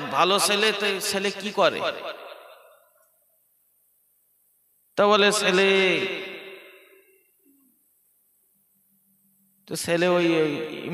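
A man chants in a melodic voice through a microphone, with echo, in phrases separated by pauses.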